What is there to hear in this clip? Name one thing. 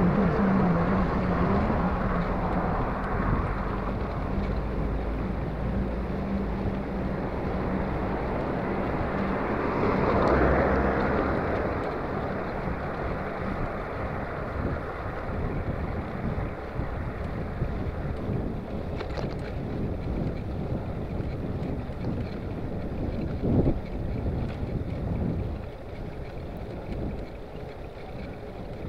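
Wind rumbles and rushes steadily past while cycling outdoors.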